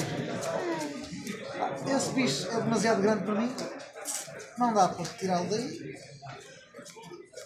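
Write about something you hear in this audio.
Playing cards are shuffled in a person's hands.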